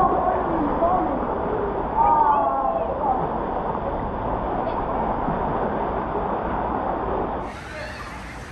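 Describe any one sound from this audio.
Water splashes up in a pool.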